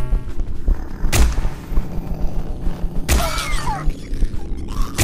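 Electric sparks crackle and fizz close by.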